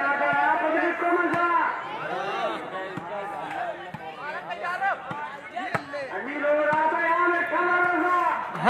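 A group of men sings loudly outdoors.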